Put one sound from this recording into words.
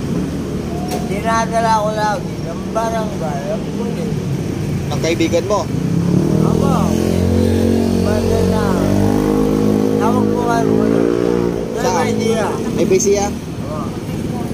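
An elderly man speaks close by.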